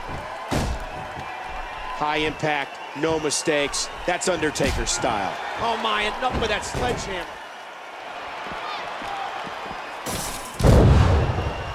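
Punches thud against a body.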